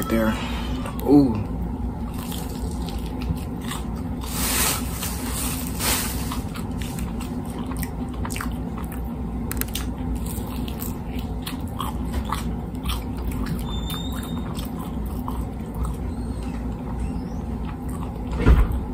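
A young man chews crunchy fried food loudly, with crisp crackles.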